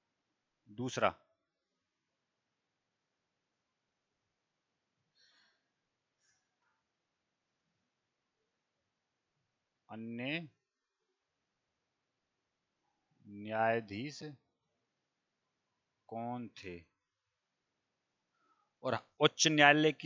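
A man speaks calmly into a headset microphone, in short bursts with pauses.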